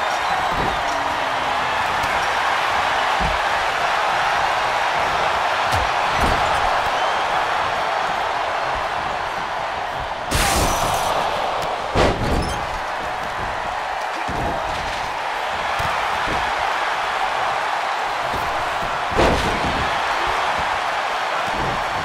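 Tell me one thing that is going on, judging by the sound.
A large crowd roars steadily in an arena.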